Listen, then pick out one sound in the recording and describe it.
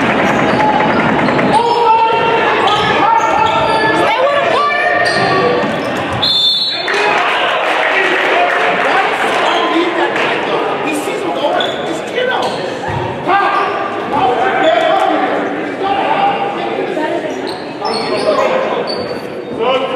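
A man shouts instructions from the sideline.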